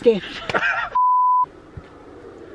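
A steady beep tone sounds.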